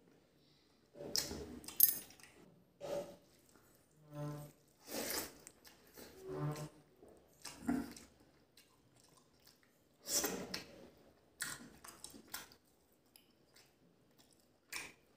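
Fingers squish and mix rice on a plate.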